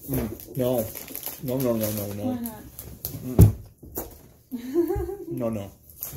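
A chip bag crinkles.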